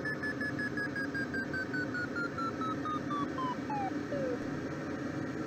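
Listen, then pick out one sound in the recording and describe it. A glider's variometer beeps in quick pulses that fall in pitch.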